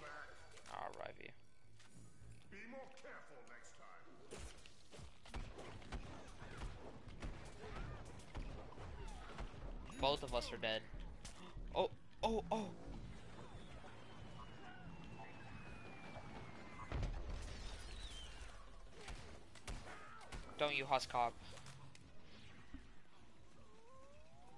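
A weapon in a video game fires bursts of blaster shots.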